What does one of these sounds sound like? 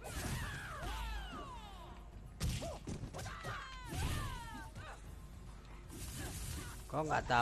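Flames whoosh and crackle.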